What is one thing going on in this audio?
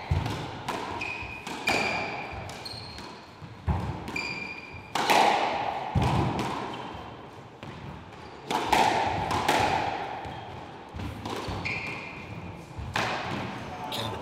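A squash ball smacks sharply off the walls in a fast rally, echoing around the court.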